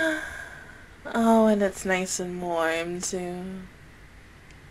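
A young woman sings playfully into a close microphone.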